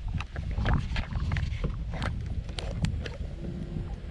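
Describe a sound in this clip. Plastic buttons click under a thumb.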